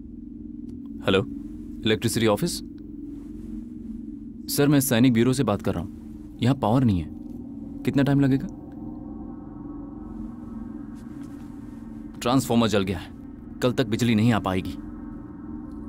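A young man speaks tensely into a phone.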